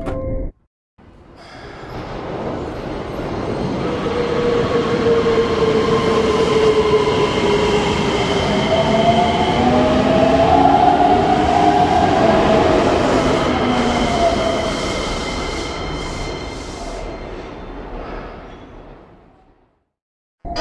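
A train rumbles in, growing louder, then slowly fades.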